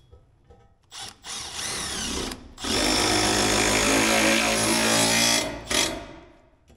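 A power drill whirs in short bursts, then runs steadily as it drives a screw.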